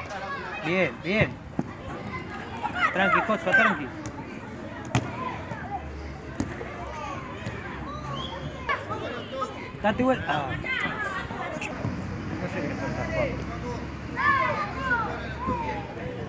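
Children shout and call out excitedly outdoors.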